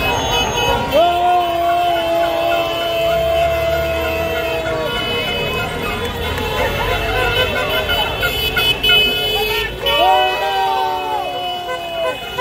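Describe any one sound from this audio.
Car horns honk loudly.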